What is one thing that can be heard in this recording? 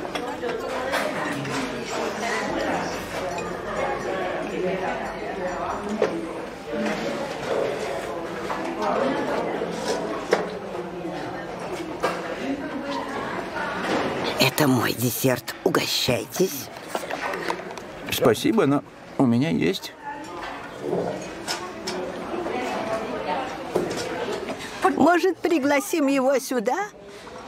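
Many elderly people chatter in a room.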